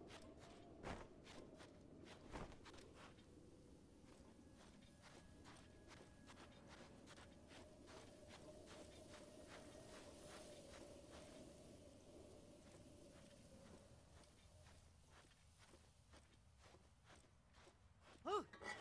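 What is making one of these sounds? Footsteps crunch quickly on sand.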